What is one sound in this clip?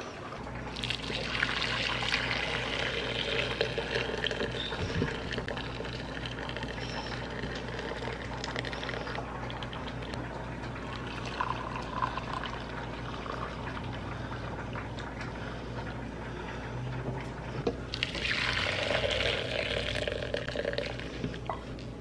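Liquid pours from a pot and splashes into a strainer.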